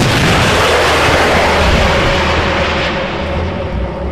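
A heavy explosion booms and rumbles away.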